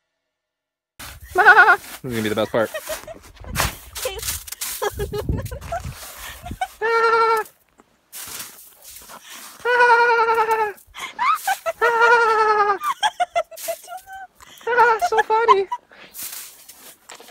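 A woman laughs with excitement close by.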